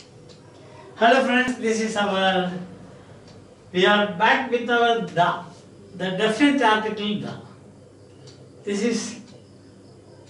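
An older man speaks calmly and clearly, close by, in short bursts with pauses.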